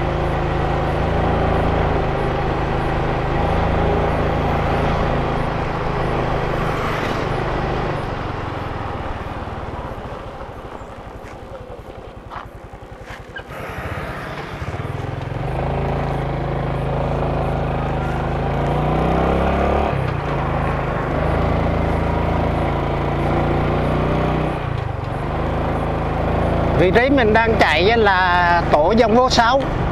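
A motorcycle engine hums steadily, easing off and then picking up again.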